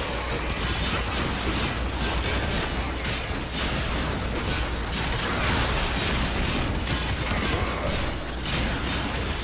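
Laser guns fire in rapid bursts.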